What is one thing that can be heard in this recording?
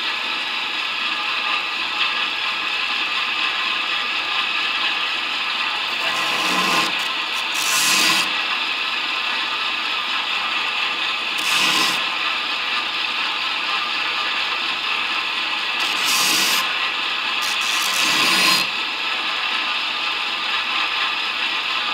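A belt grinder runs with a steady whine.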